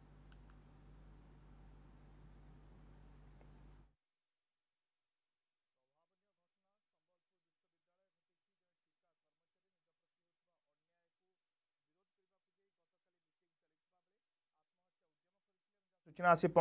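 A group of men talk quietly nearby.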